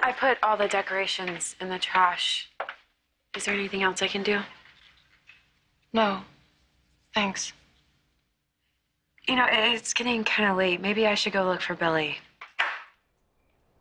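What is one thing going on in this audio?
A second young woman answers nearby.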